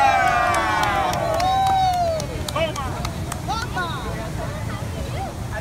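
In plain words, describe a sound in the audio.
A crowd claps outdoors.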